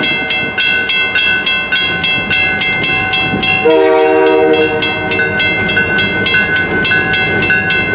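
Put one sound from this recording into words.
A railway crossing bell dings rapidly and steadily.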